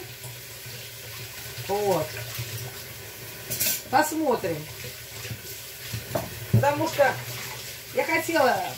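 Dishes clink in a sink.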